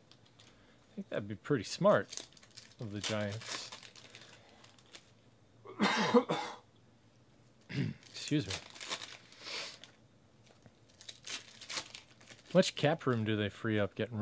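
Trading cards rustle and flick as they are shuffled and sorted.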